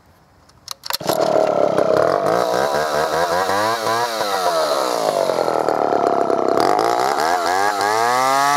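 A chainsaw engine starts up and roars loudly, revving up and down.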